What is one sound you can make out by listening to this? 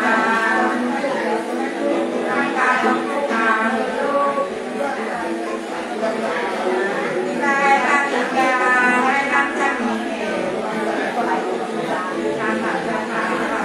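A two-stringed fiddle plays a bowed melody.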